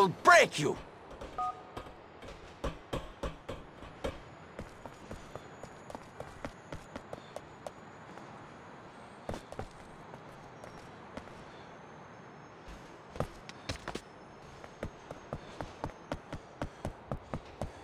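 Footsteps patter quickly and evenly on a hard surface.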